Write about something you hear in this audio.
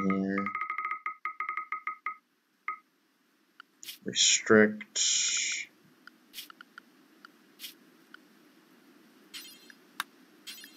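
Short electronic beeps and clicks sound in quick succession.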